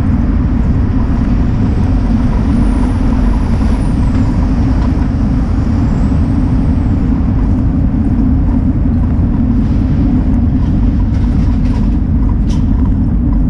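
Wind rushes past a moving vehicle in a loud, steady low roar.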